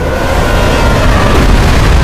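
A large waterfall roars steadily.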